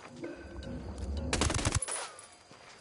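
A gunshot fires with a loud bang.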